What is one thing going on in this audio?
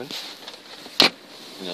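A plastic lid clicks shut.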